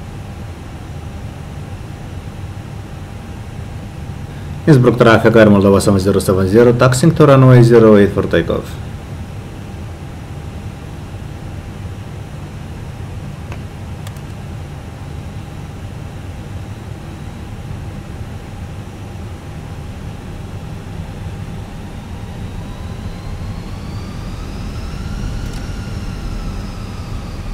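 The jet engines of an airliner idle with a low hum.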